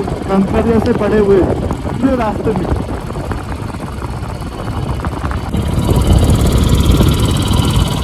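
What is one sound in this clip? Wind rushes past, growing louder as the motorcycle speeds up.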